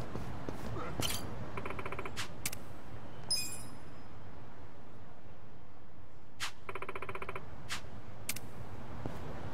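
Short electronic blips sound from a menu.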